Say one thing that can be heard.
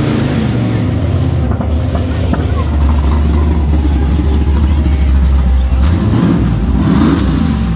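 A car engine rumbles deeply close by.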